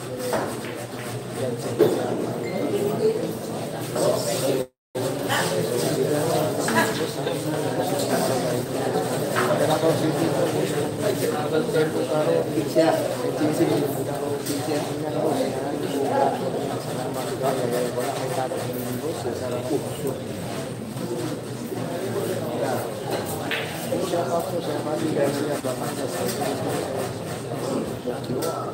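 A crowd of young men and boys chatters steadily nearby.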